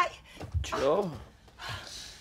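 A man groans sleepily nearby.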